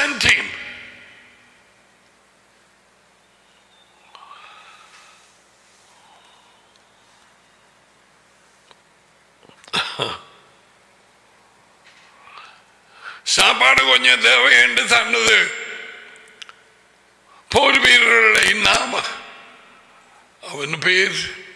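A middle-aged man speaks forcefully into a close microphone, in bursts with long pauses.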